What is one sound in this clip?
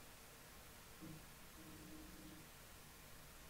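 A middle-aged man speaks briefly and quietly.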